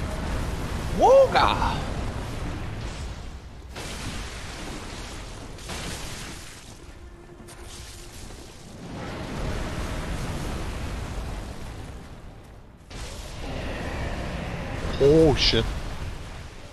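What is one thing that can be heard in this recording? A huge beast roars and shrieks.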